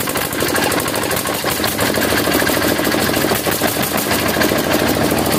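A diesel engine runs loudly with a rapid, steady clatter.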